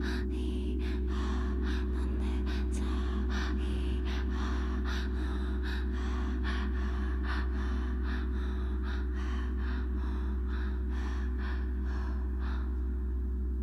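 Crisp electronic beats tick in a steady rhythm, then stop.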